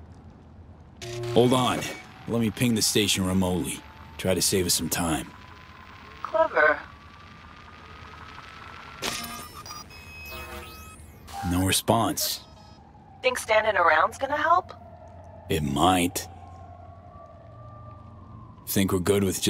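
A woman talks calmly over a call.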